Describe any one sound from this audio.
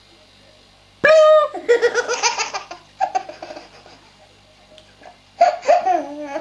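A baby laughs loudly and gleefully close by.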